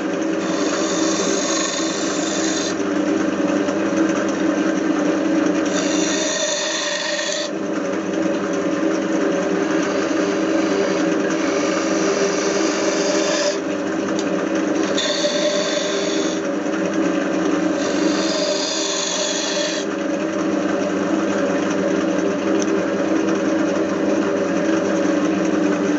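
A lathe motor hums steadily throughout.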